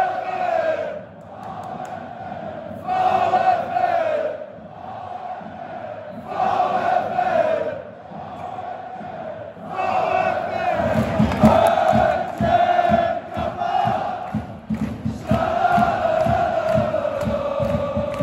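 A large stadium crowd sings a chant loudly in unison, echoing across the stands.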